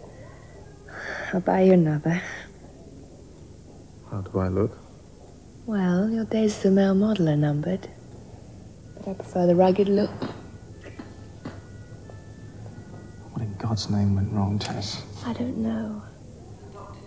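A woman speaks softly and gently nearby.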